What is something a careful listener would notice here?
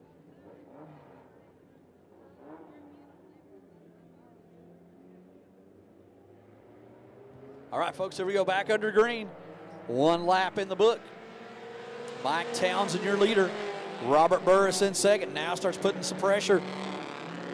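Race car engines roar around a dirt track.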